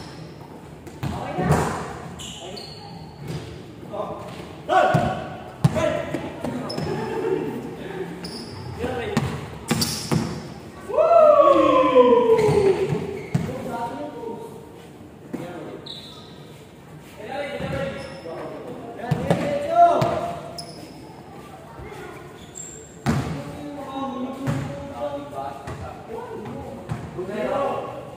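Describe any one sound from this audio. Young men shout and call out to each other across the hall.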